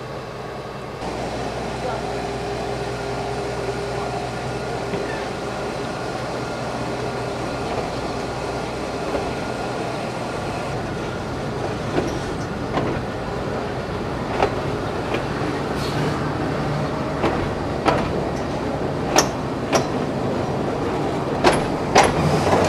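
A train rumbles and rattles steadily along the rails.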